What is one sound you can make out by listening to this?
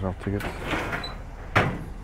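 A small cabinet door is pushed shut.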